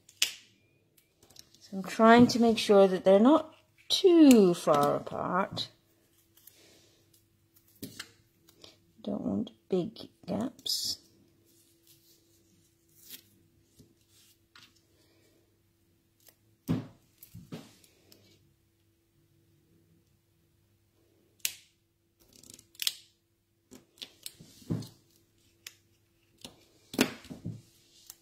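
Paper strips rustle and tap as they are handled.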